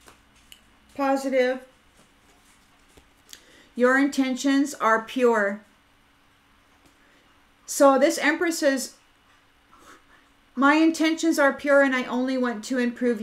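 A middle-aged woman speaks calmly and closely, in short bursts.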